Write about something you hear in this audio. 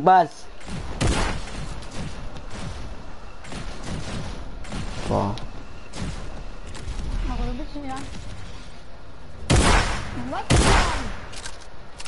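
A game bounce pad launches with a loud whoosh.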